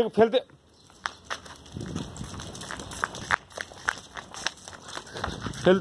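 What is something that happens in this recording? A dog's paws scrape and patter on rough concrete.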